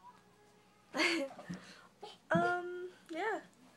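A small child shouts and squeals excitedly.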